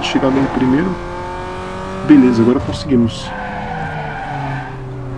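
A car engine hums steadily, its pitch slowly dropping as the car slows.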